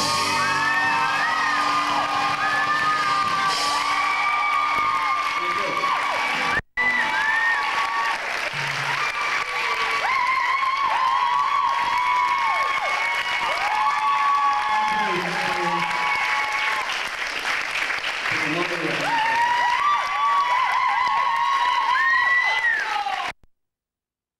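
A band plays loud rock music on electric guitars.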